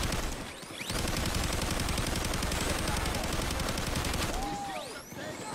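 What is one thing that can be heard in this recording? An electric taser crackles loudly.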